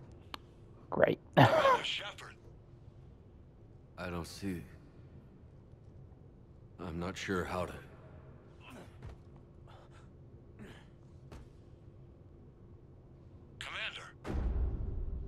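A wounded man groans and gasps in pain close by.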